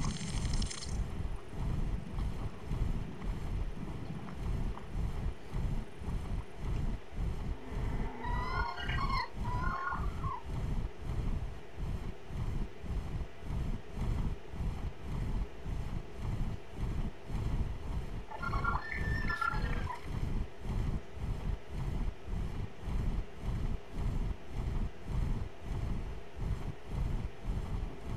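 Large wings flap with a steady, rapid rhythm of deep whooshing beats.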